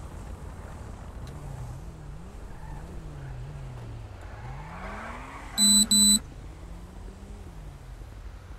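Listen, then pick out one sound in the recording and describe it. A siren wails nearby, rising and falling.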